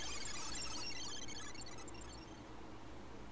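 A game's sparkling chime effect twinkles quickly.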